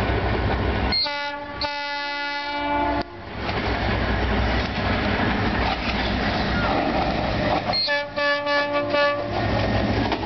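A train horn blares loudly in two long blasts.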